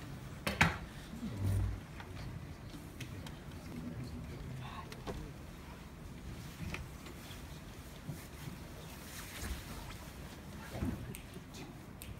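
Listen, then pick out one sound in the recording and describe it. A man speaks calmly to a group in a large room.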